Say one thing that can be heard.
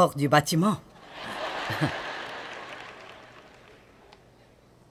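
An audience laughs and claps.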